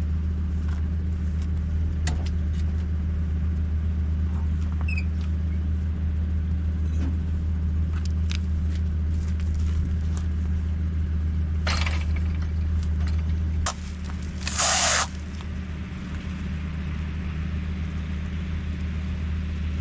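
A tractor engine idles with a steady low hum.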